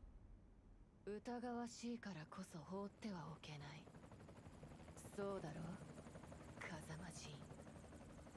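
A young woman speaks quietly, as if thinking aloud.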